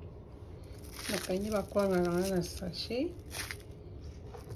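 Plastic wrap crinkles under a hand.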